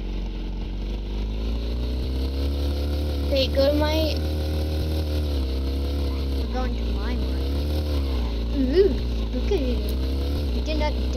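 A motorbike engine drones, rising and falling in pitch.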